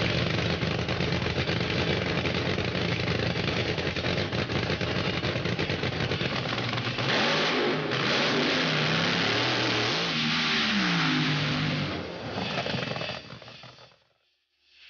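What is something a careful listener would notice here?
A car engine roars loudly at speed.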